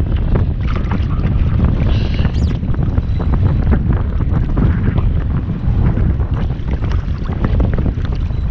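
A fishing reel clicks as it winds.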